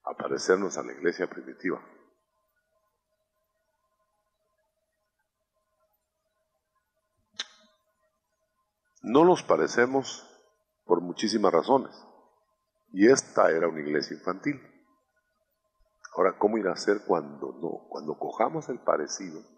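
An elderly man speaks with emphasis into a microphone, in bursts with pauses.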